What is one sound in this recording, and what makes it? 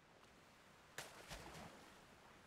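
Something plunges into water with a splash.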